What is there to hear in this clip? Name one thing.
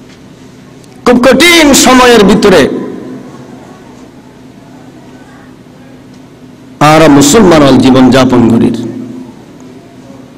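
A man chants loudly and forcefully into a microphone, echoing in a large space.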